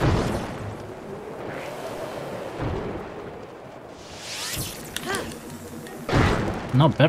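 Lava bubbles and rumbles steadily.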